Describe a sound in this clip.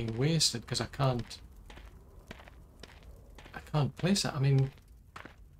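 Footsteps crunch on gravel and dry ground.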